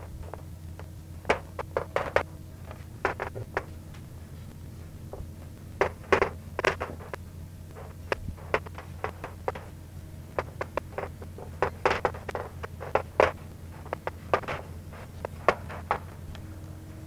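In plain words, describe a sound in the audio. Chalk taps and scrapes on a blackboard in short bursts.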